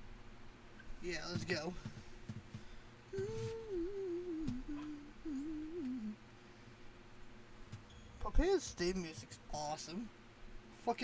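A young woman speaks playfully into a microphone, close up.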